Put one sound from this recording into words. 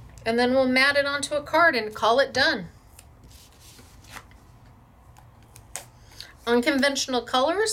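Sticky tape peels off a roll with a soft crackle.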